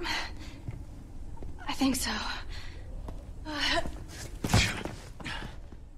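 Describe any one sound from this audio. A young woman speaks softly and anxiously.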